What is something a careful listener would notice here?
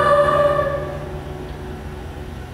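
A children's choir holds a final sung note that fades in a large echoing hall.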